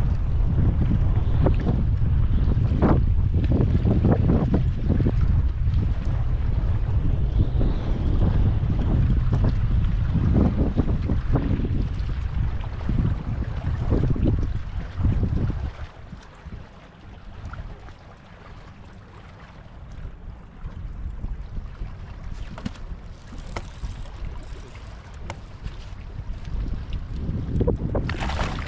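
Small waves lap against a boat's hull.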